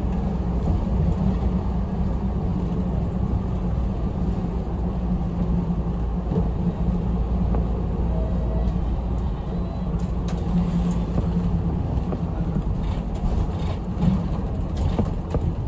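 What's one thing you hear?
A bus engine hums low and steady from inside the cabin.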